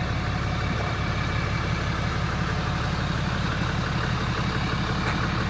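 A truck engine idles nearby with a steady low rumble.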